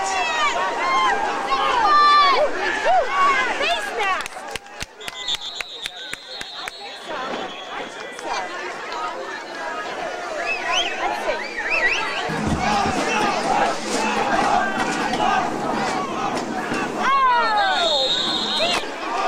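A crowd of spectators close by shouts and cheers loudly.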